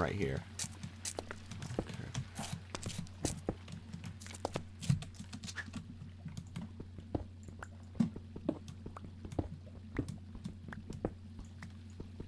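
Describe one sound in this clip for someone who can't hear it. A pickaxe chips at stone with quick, repeated taps.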